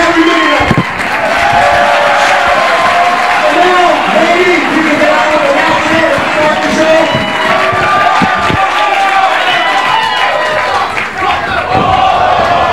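A crowd cheers and chatters.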